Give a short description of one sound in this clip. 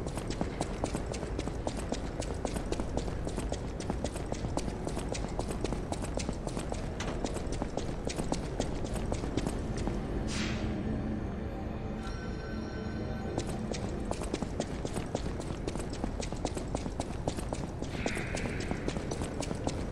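Quick footsteps clatter on a hard stone floor.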